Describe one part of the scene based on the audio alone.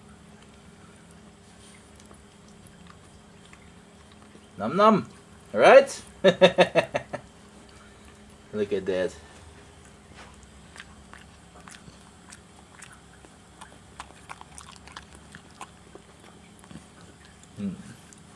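A dog gnaws on a bone with soft clicks and scrapes.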